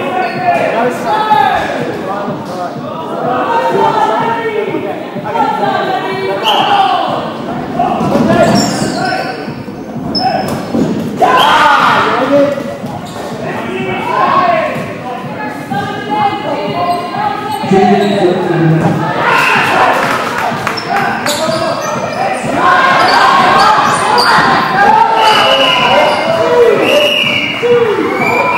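Children shout and call out to each other in a large echoing hall.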